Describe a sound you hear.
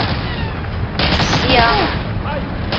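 A submachine gun fires a short burst.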